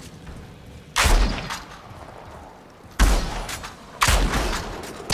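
A rifle fires single loud shots.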